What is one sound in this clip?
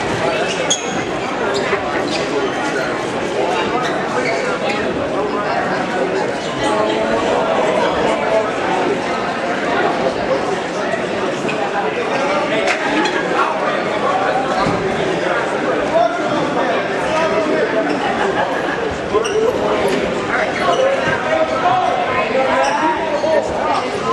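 Wrestling shoes squeak and shuffle on a mat.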